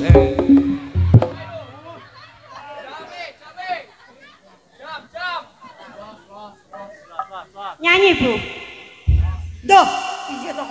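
A young woman sings through a microphone over loudspeakers.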